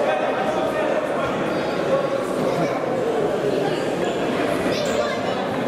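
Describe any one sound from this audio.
Voices of spectators and players echo in a large indoor hall.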